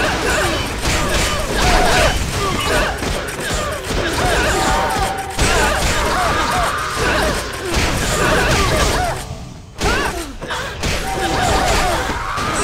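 Weapons clash and strike in combat.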